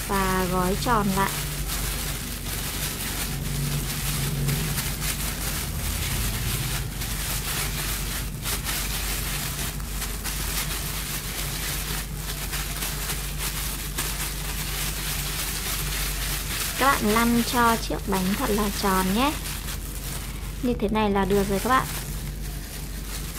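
Plastic gloves crinkle and rustle as hands knead soft dough.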